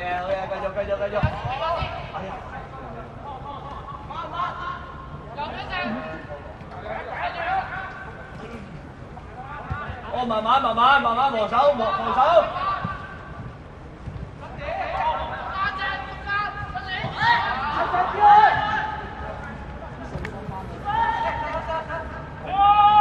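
Young men shout and call out to each other across an open pitch.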